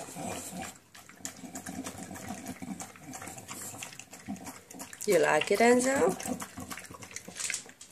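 A dog laps and chews food wetly from a metal bowl, close by.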